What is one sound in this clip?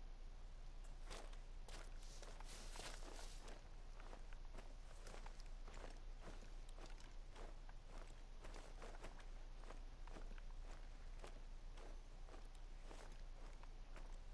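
Leafy brush rustles close by as someone pushes through it.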